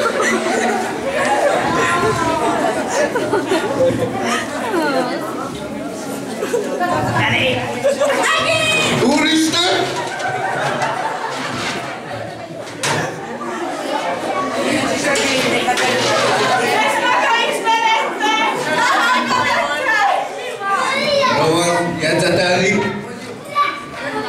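A young man speaks with animation through a microphone and loudspeaker in an echoing room.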